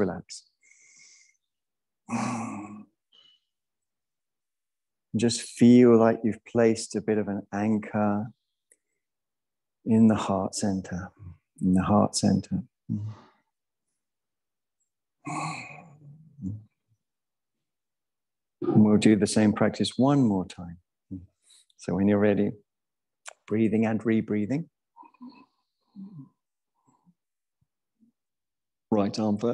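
A man speaks calmly and slowly into a close microphone, with pauses.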